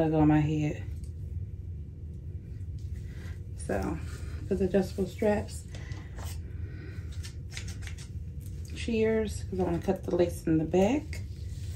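A woman talks calmly and close to the microphone.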